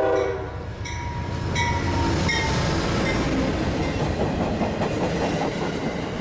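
A passenger train rumbles and clatters past close by.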